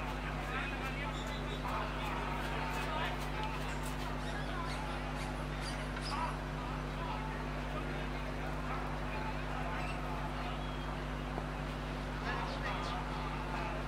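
Men talk and call out in the distance outdoors.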